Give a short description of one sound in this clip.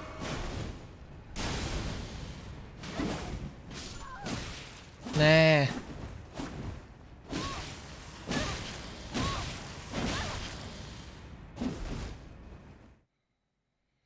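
Swords clash and strike in a fight, with sharp metallic hits.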